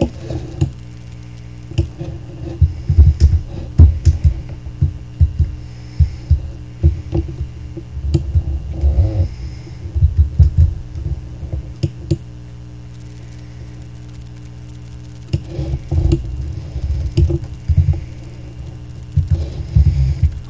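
A boy talks with animation close to a microphone.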